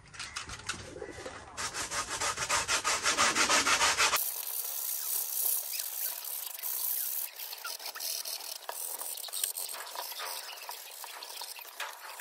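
Light foam parts tap and rustle as they are handled.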